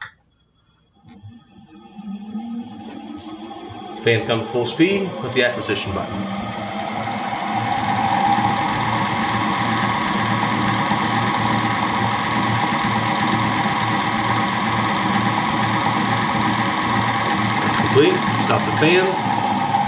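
An electric motor starts up and then hums steadily.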